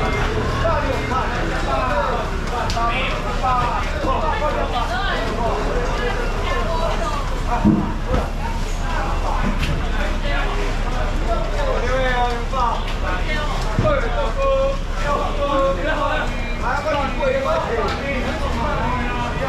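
Many men and women talk and call out at once, close by, in a lively crowd.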